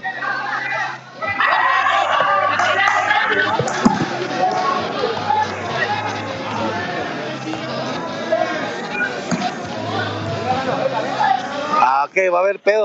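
A crowd of spectators cheers and shouts loudly in a large echoing hall.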